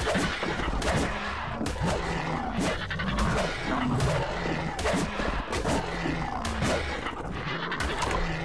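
Large wings flap with heavy, regular whooshes.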